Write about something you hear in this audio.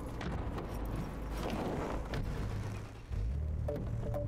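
A car door thumps shut.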